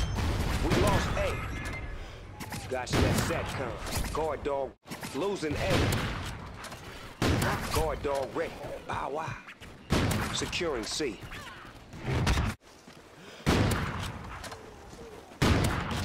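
A rifle fires loud single shots that boom and echo.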